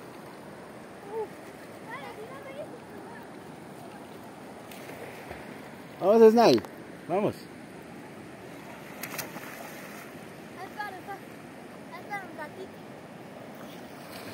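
A shallow river flows and laps gently against a sandy bank.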